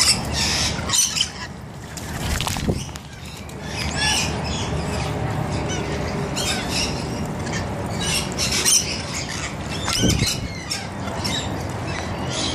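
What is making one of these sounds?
Water trickles and splashes steadily into a small pool.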